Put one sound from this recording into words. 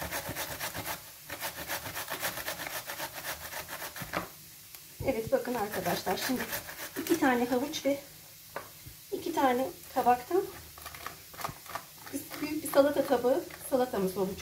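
A zucchini is rubbed quickly against a metal grater, scraping rhythmically.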